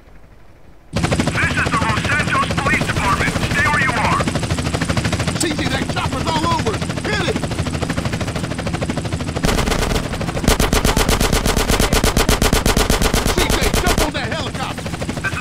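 A helicopter's rotor thumps loudly overhead.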